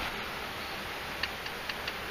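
A shallow stream trickles faintly over stones.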